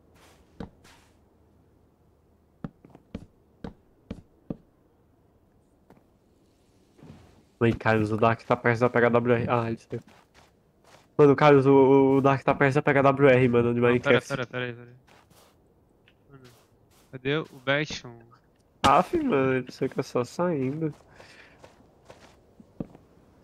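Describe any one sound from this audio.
Footsteps crunch on gravelly ground.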